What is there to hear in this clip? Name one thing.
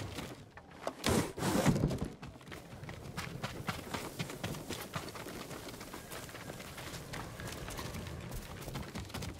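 Quick footsteps patter across snowy ground and wooden floors.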